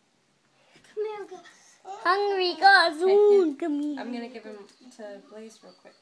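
A little girl babbles and squeals close by.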